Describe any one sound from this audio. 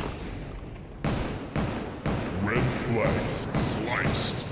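Explosions boom as rockets hit nearby.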